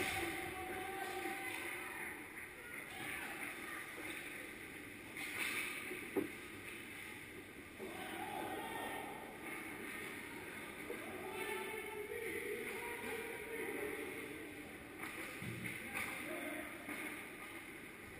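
Skates scrape on ice in a large echoing hall.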